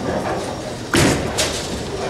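A bowling ball rolls along a lane with a low rumble.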